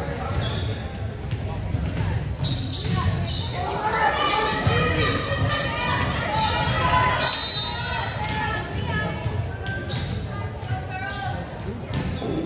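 A volleyball is hit back and forth with sharp smacks.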